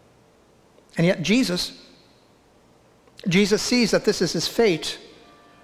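An older man speaks calmly through a microphone in a large echoing hall.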